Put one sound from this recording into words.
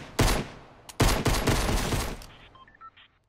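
Gunshots fire in loud, quick bursts.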